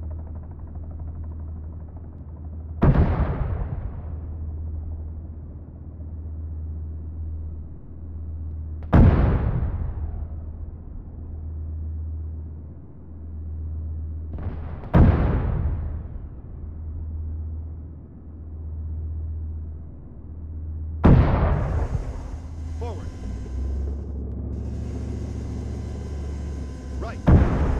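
A tank engine rumbles steadily and low.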